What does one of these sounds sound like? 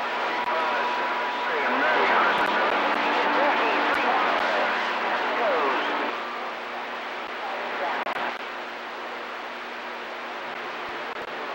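A CB radio hisses with static.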